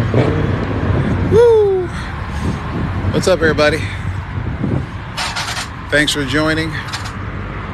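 A man talks outdoors nearby.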